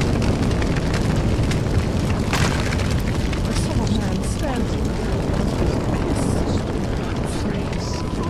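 A fire roars and crackles nearby.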